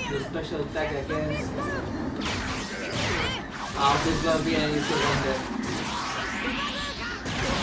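A man talks with animation, heard through a microphone.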